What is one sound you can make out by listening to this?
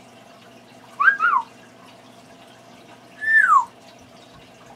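A parrot whistles in short falling notes.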